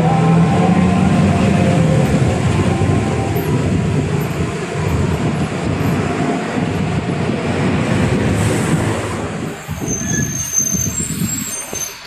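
A bus rattles and vibrates over the road.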